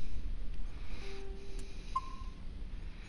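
A game menu beeps as a selection is made.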